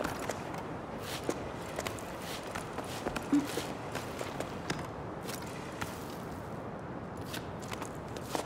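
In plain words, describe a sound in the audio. Hands and shoes scrape and tap on rock as a climber pulls upward.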